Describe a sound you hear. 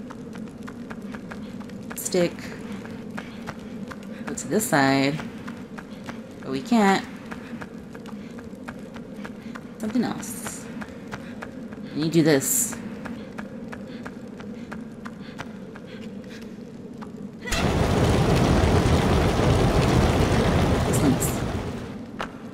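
Light footsteps patter on a stone floor.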